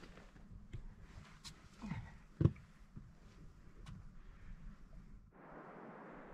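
Boots scrape and knock on rock as a hiker climbs.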